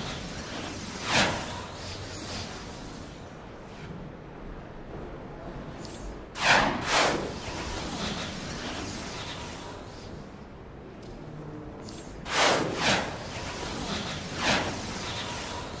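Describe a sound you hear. Sharp whooshing game effects burst out a few times.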